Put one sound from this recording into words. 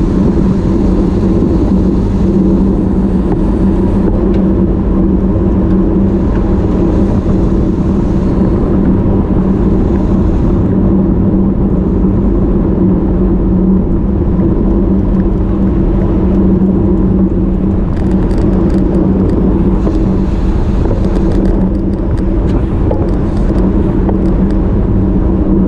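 Wind rushes loudly past the microphone throughout.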